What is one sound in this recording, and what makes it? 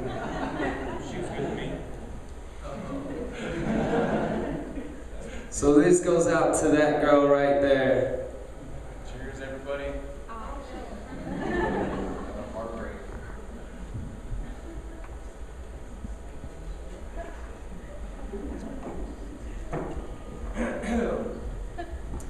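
An electric guitar strums.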